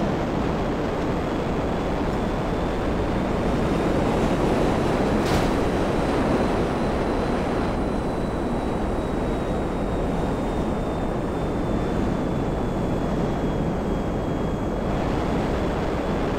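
A jet engine whines with a high steady tone.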